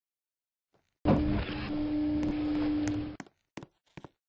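Elevator doors slide shut with a low hum.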